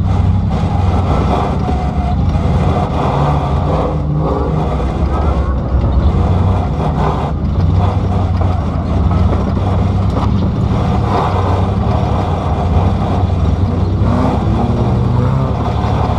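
A race car engine rumbles loudly from inside the cabin.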